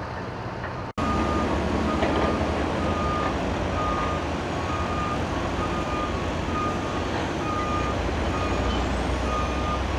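Heavy trucks and cars rumble steadily past on a highway.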